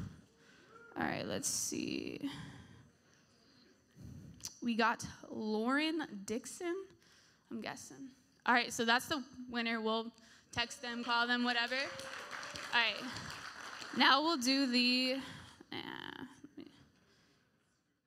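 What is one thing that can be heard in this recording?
A young woman speaks into a microphone with animation in a large echoing hall.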